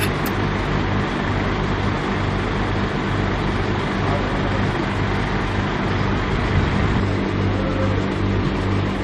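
A man speaks nearby outdoors.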